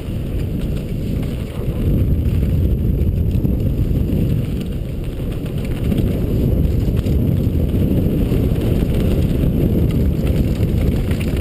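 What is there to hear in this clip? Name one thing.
Bike tyres rumble and crunch fast over a dirt trail.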